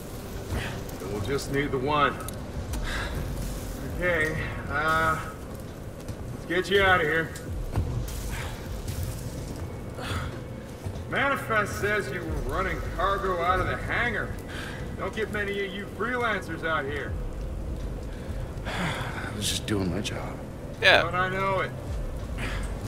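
A young man talks calmly into a headset microphone.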